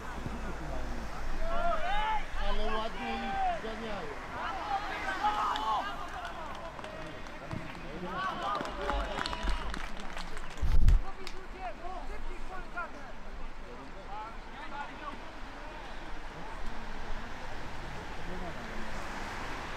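Young men shout to each other across an open football pitch outdoors.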